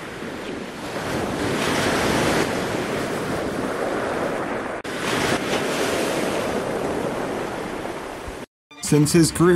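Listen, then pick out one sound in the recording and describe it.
Wind rushes past outdoors.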